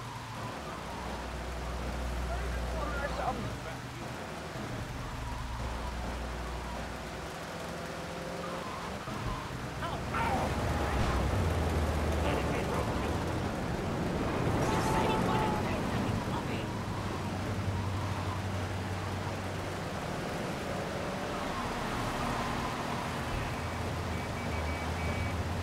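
Rain patters steadily all around.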